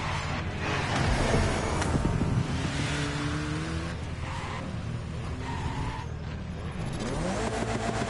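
Car tyres screech as the car drifts and spins.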